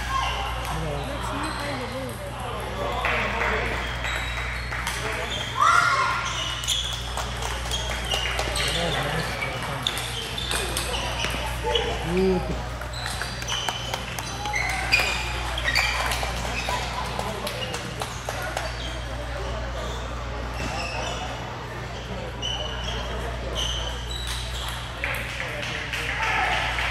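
Ping-pong balls click sharply on tables and paddles, over and over.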